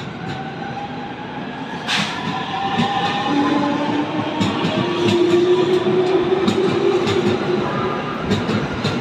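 Train brakes squeal with a high, gliding whine.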